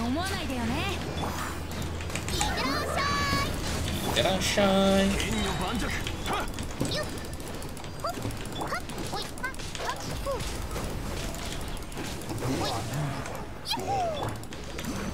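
Chiming spell effects ring out in rising tones.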